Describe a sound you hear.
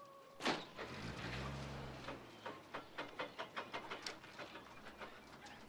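Wire fencing rattles and clinks.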